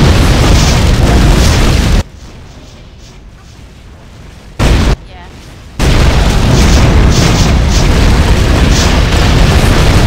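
Magic blasts crackle and explode in rapid bursts.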